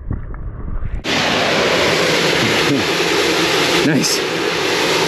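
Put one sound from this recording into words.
Wind buffets loudly close by, outdoors.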